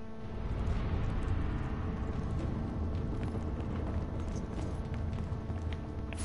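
A low mechanical rumble drones steadily in a large hall.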